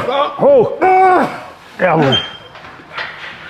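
A young man groans and strains loudly.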